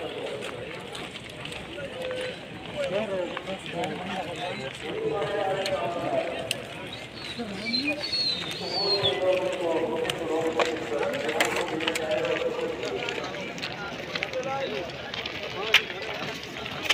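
A crowd of men chatter outdoors nearby.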